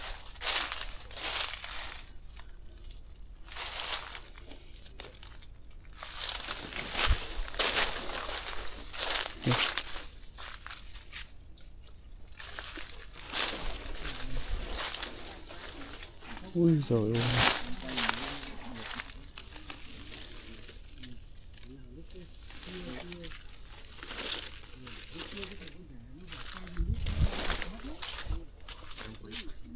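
Wind rustles through leaves outdoors.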